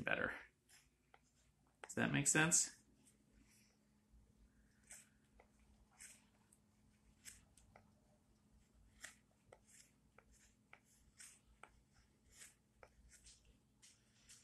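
A knife shaves thin curls from wood in short, scraping strokes.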